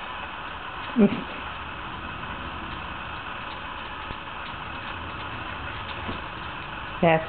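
A puppy gives short, sharp barks.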